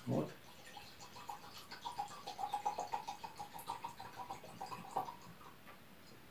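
Liquid pours from a bottle into a glass.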